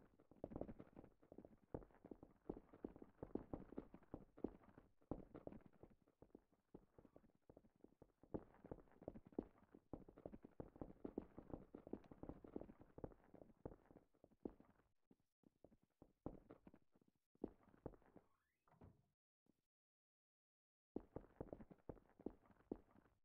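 A man talks close to a microphone, in a low, thoughtful voice.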